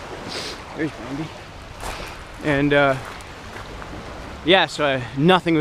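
Small waves lap gently on a pebble shore.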